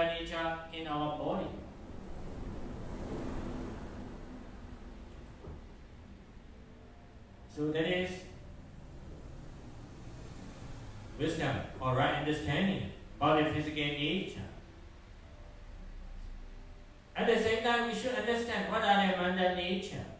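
A middle-aged man speaks calmly into a microphone, with pauses, in a room with some echo.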